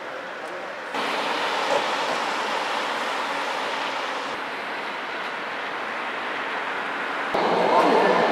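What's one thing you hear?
Traffic hums along a road outdoors.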